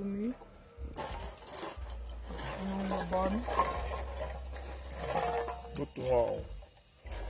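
Aluminium cans crunch as they are stamped flat underfoot.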